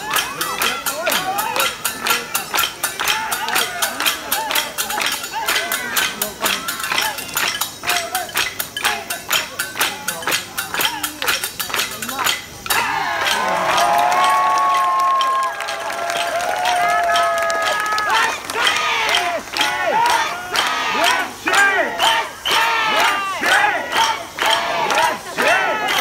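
Large drums pound in fast, driving rhythms outdoors.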